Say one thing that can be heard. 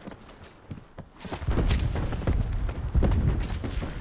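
Footsteps run across the ground.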